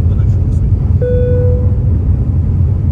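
A chime sounds once in an airplane cabin.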